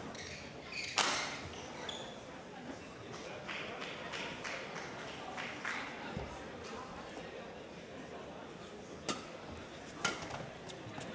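Rackets strike a shuttlecock with sharp smacks.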